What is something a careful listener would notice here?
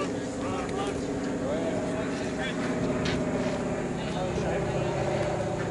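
Men chat casually nearby, outdoors.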